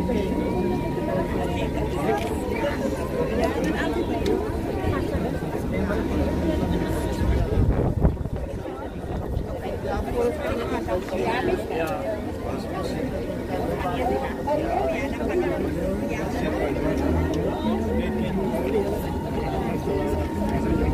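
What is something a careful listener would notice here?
A heavy casket rolls slowly on metal rollers.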